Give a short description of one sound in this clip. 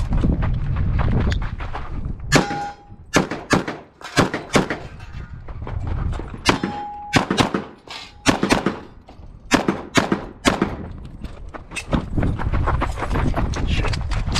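Footsteps crunch on gravel as someone runs.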